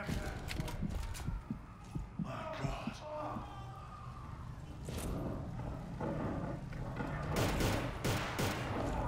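Debris crashes and rumbles in an explosion.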